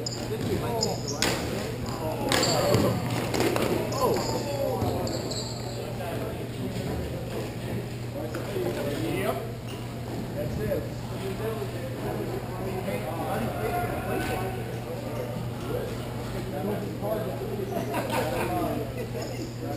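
Plastic wheels roll and scrape across a hard floor.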